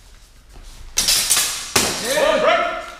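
Steel blades clash and ring sharply.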